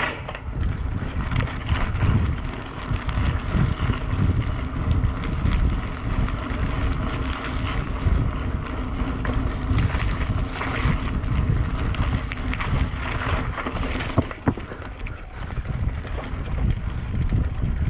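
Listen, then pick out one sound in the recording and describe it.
Mountain bike tyres crunch along a dirt track.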